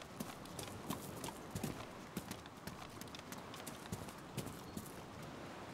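Boots thud on concrete in quick, steady footsteps.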